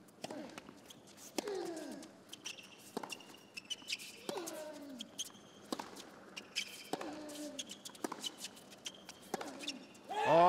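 Tennis balls are struck back and forth with sharp pops.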